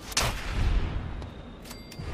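A gunshot rings out and echoes away.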